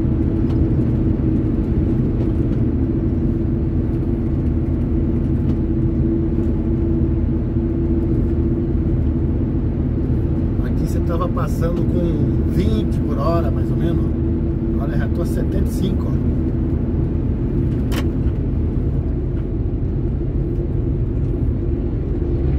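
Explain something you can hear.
Tyres roll on the road surface with a steady rumble.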